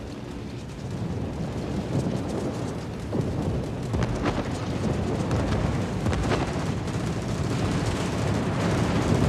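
Shells explode with a deep rumbling roar.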